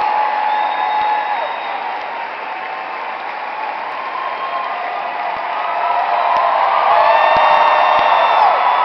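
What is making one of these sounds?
A large audience chatters and murmurs in a big echoing hall.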